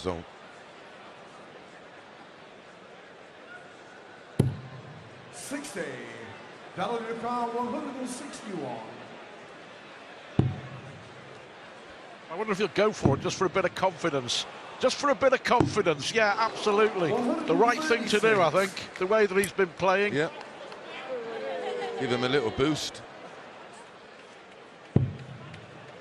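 A dart thuds sharply into a dartboard.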